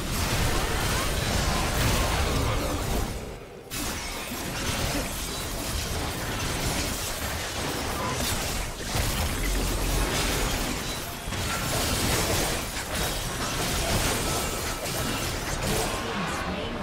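Game spell effects blast and crackle during a fight.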